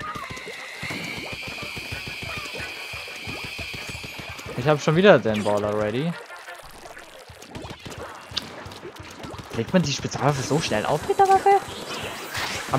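Paint sprays and splatters in quick bursts.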